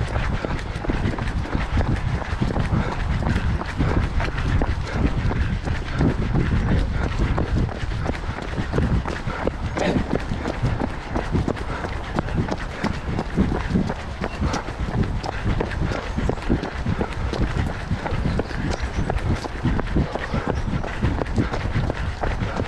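Footsteps thud and crunch rapidly on a gravel path.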